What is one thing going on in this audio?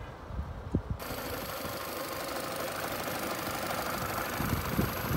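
A car engine idles steadily close by.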